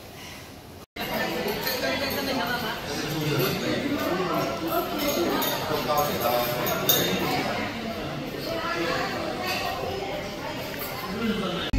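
Many people chatter at once in a busy room.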